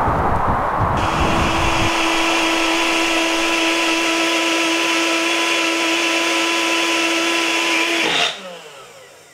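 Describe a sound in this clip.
A blender whirs loudly and steadily, then stops.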